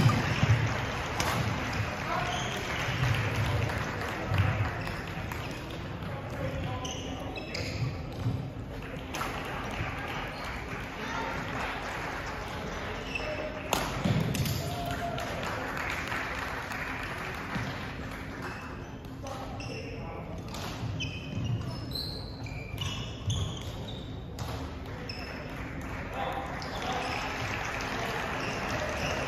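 A crowd of people chatter in the background of an echoing hall.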